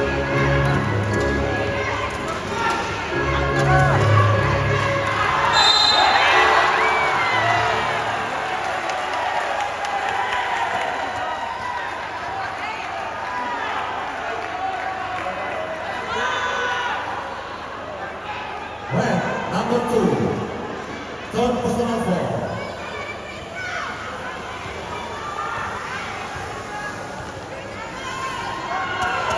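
A crowd chatters and cheers in a large echoing hall.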